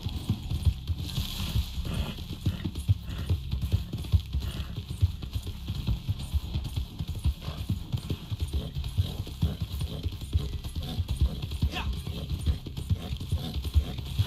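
A horse's hooves thud steadily on soft ground at a gallop.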